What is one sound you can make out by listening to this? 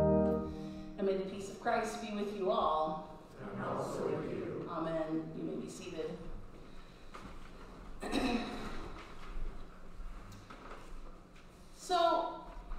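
A woman speaks with animation into a microphone in a reverberant hall.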